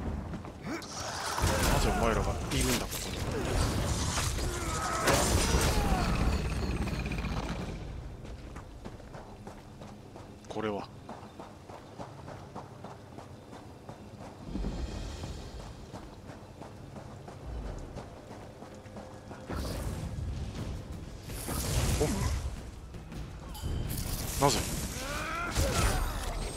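Swords clash and strike hard in a fight.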